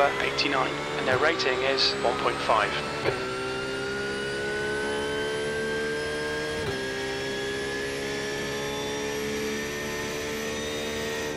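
A racing car engine drones and rises steadily in pitch, dropping briefly at each gear change.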